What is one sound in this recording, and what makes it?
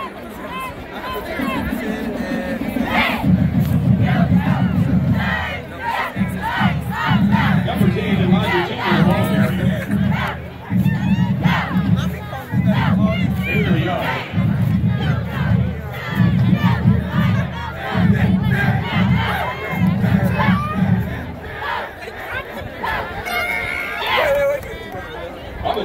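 Young women chant a cheer loudly together outdoors.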